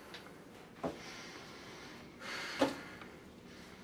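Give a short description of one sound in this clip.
A cloth rubs and wipes across a table.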